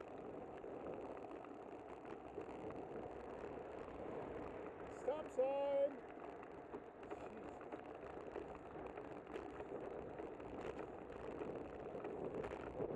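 Wind rushes steadily over the microphone while riding outdoors.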